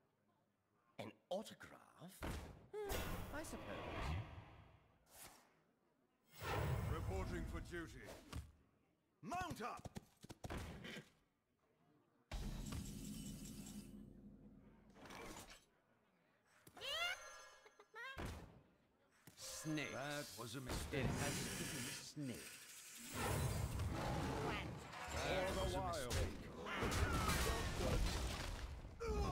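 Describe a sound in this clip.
Cartoonish game sound effects chime, whoosh and thud as cards are played.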